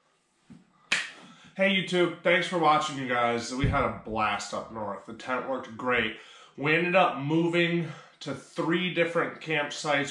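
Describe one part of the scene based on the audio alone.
A man talks calmly and close by to the listener.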